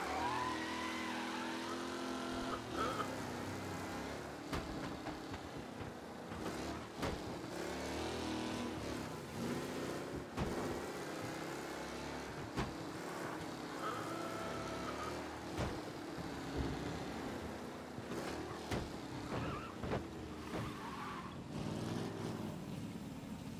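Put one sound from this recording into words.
A racing car engine roars steadily as the car speeds along.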